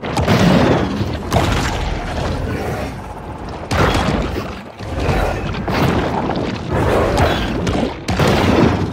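Underwater splashing and thrashing bursts out in loud, rough surges.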